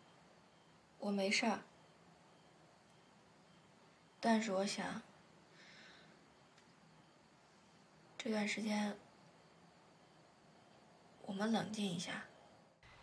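A young woman speaks softly in short phrases, close by.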